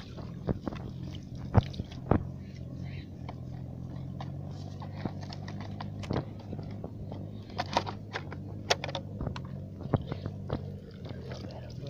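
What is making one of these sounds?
Hands squelch and slosh in wet mud.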